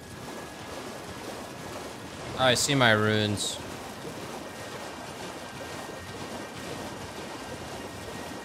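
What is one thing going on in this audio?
A horse gallops and splashes through shallow water.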